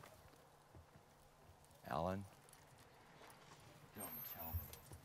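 A man steps up into a camper van.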